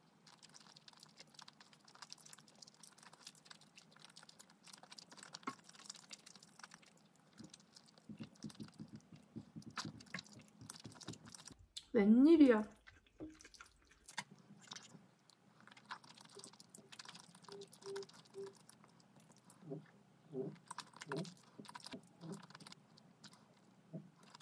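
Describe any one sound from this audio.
A young woman slurps noodles loudly and close up.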